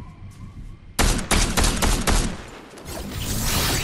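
A scoped sniper rifle fires a single shot in a video game.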